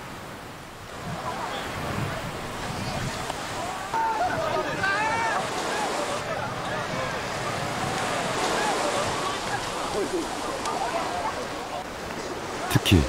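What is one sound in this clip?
A crowd of people chatters and shouts playfully outdoors.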